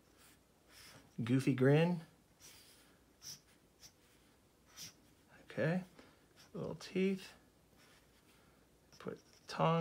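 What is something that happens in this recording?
A marker squeaks and scratches across paper.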